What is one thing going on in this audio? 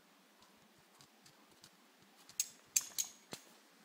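A large dog's claws click on concrete.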